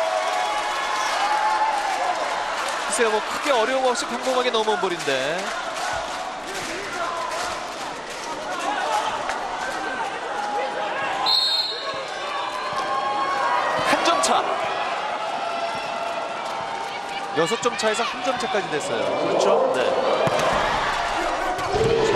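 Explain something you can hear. A large crowd cheers and chants in an echoing hall.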